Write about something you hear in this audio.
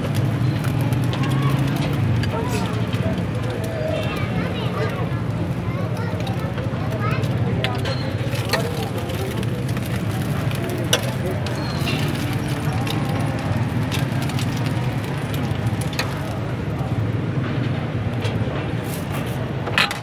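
Eggs sizzle as they fry on a flat iron griddle.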